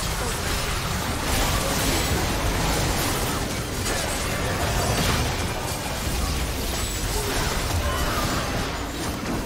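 Magic blasts and weapon strikes crackle and thud in a busy fight.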